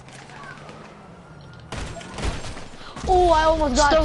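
A single gunshot cracks.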